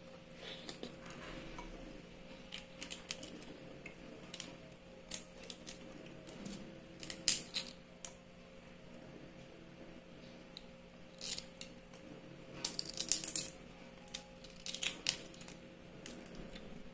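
Eggshell crackles and crunches as a woman peels a boiled egg.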